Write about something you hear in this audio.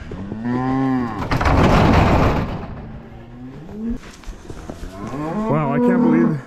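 Cattle moo loudly nearby.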